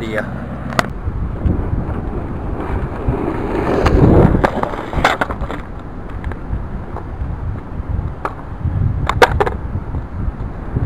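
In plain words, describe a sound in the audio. Skateboard wheels rumble over rough pavement.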